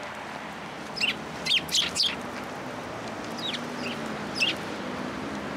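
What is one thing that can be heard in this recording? A sparrow chirps in short, sharp bursts.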